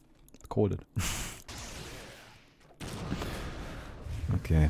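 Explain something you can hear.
Spell effects crackle and whoosh in a video game.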